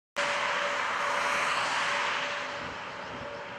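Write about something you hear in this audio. A car speeds past close by with a loud rushing whoosh.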